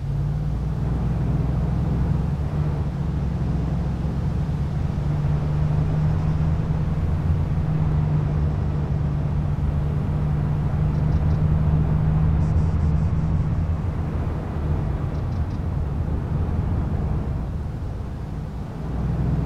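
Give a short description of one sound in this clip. A vehicle engine hums steadily and loudly from inside the cab.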